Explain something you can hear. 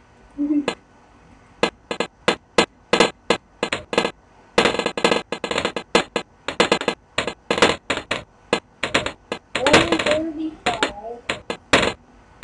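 Game balloons pop in quick, rapid bursts.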